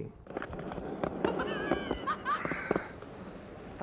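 A skateboard clacks against the ground.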